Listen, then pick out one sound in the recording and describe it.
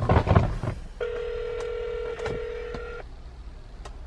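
A phone rings out through its loudspeaker.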